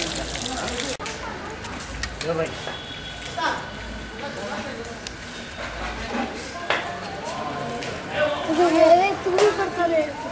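Boys and men chatter close by.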